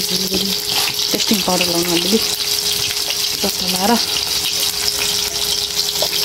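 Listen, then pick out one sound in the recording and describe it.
Oil sizzles and bubbles in a frying pan.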